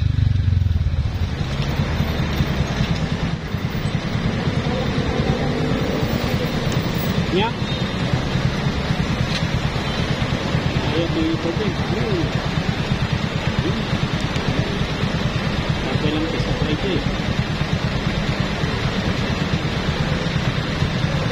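A motorcycle engine idles with a steady low putter.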